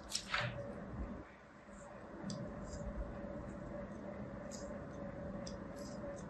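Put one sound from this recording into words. Small scissors snip soft foam.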